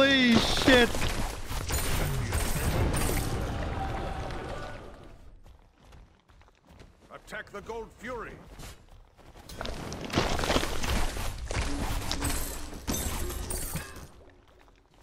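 Game combat effects clash and burst.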